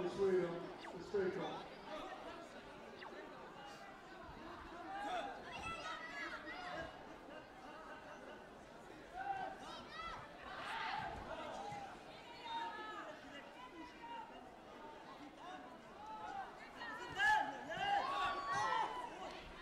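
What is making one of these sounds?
Spectators and coaches shout and cheer in a large echoing hall.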